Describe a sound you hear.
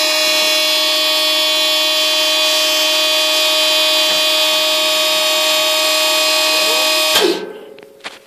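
An engine runs with a steady, loud whine, then cuts off abruptly.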